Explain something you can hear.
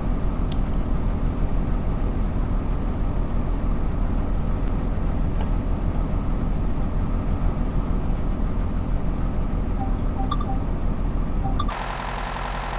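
A train cab rumbles and hums steadily.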